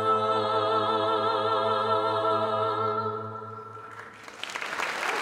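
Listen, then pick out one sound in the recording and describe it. A young woman sings a sustained note with vibrato into a microphone.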